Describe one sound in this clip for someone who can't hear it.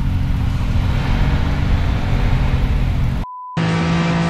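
A car engine rumbles low and loud.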